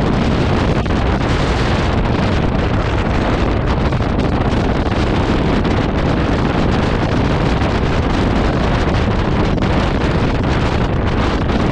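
Wind roars loudly past a motorcycle rider at speed.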